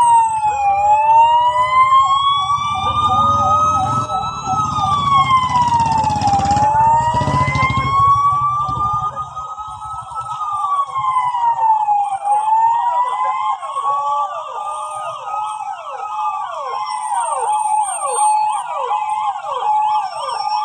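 Police sirens wail and yelp close by.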